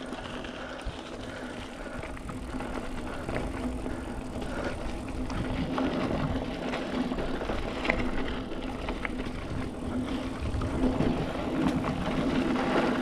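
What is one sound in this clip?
A bicycle's frame and chain rattle over bumps.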